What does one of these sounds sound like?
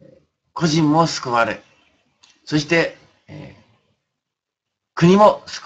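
An elderly man speaks calmly and close to the microphone, in short phrases with pauses.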